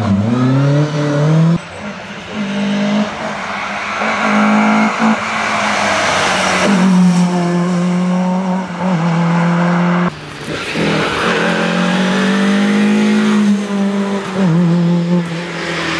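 A rally car engine revs hard and roars past close by.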